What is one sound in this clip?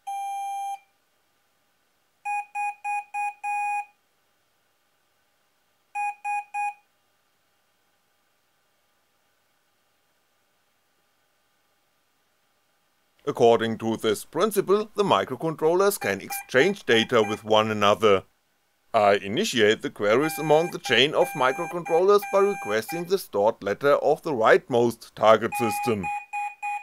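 Small electronic buzzers beep in short, shrill bursts.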